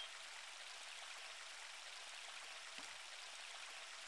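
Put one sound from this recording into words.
A fishing float plops into water.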